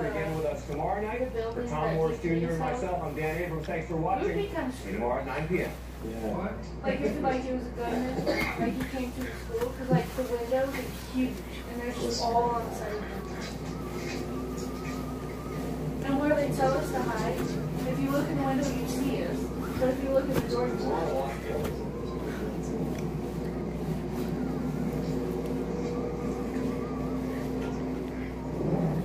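A young woman sings loudly and with feeling, close by.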